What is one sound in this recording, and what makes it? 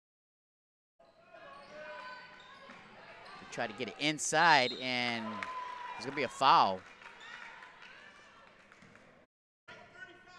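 A crowd cheers and murmurs in an echoing gym.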